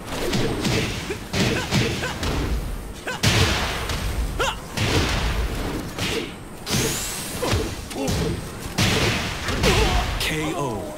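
Punches and kicks land with heavy thuds and bursts.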